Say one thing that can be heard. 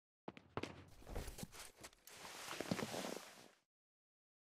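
A man sits down heavily in a padded chair.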